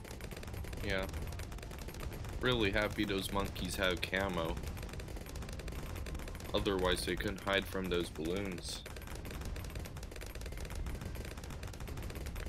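Explosions boom and pop in a video game.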